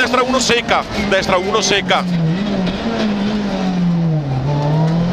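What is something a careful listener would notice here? A car engine drones loudly and shifts in pitch.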